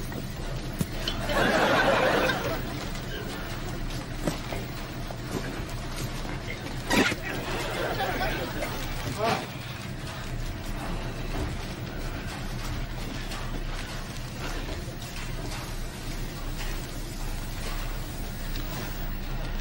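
A large plastic bag rustles and crinkles.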